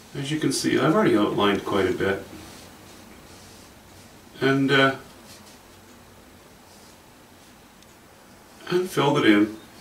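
An older man talks calmly and close by, in short bursts with pauses.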